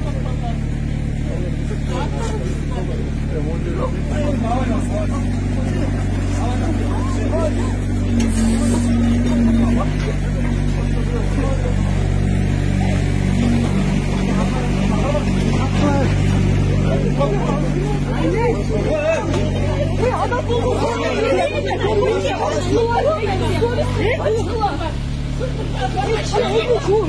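A middle-aged woman shouts loudly up close.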